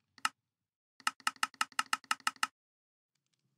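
Quick clicks tick rapidly in a row.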